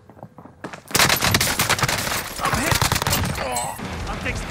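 A gun fires in automatic bursts.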